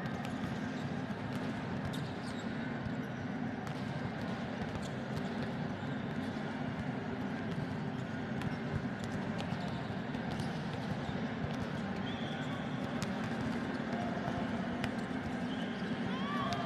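A small crowd murmurs and cheers in the distance.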